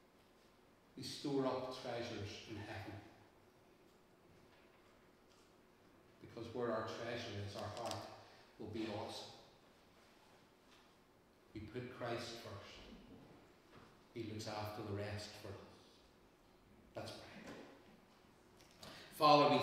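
An elderly man speaks calmly in phrases, with pauses, in an echoing room.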